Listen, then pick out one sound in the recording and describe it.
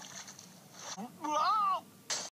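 An elderly man cries out in a cartoonish voice.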